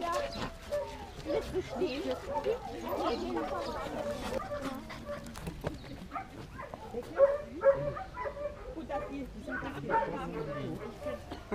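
Several adults chat nearby outdoors.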